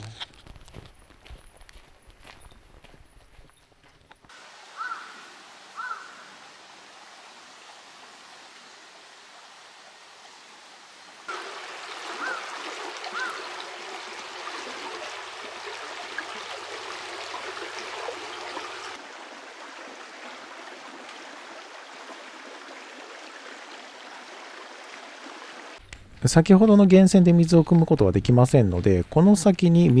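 Footsteps crunch on a leafy gravel path.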